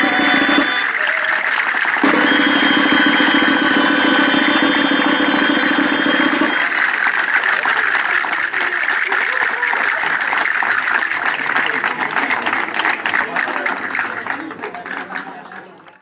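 Castanets click rapidly in rhythm.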